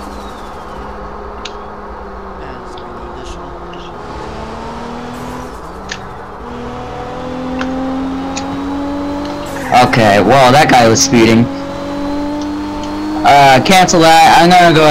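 A car engine hums steadily and rises in pitch as the car speeds up.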